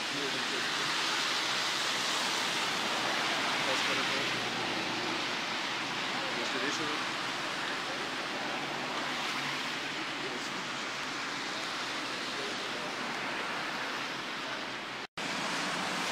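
Rain patters steadily on standing water.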